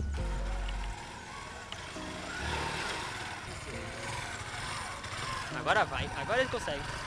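A motorcycle engine runs and revs in short bursts nearby.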